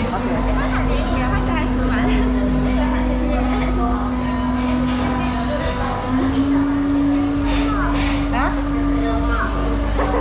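A young woman speaks up close, calmly.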